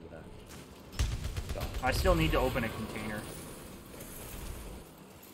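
Gunfire and explosions crackle loudly.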